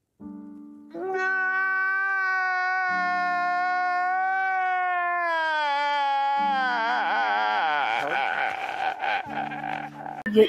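A man wails and sobs loudly.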